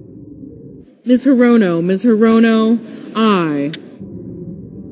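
A woman calls out loudly through a microphone.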